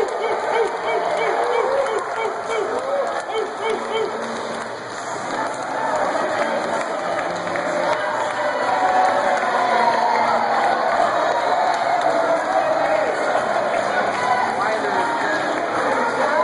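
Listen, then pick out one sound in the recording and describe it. A crowd of spectators chatters and cheers, echoing in a large indoor pool hall.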